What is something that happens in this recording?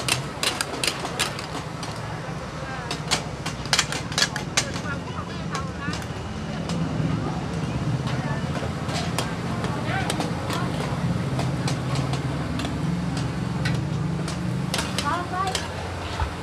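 Metal spatulas clink and scrape against hot pans.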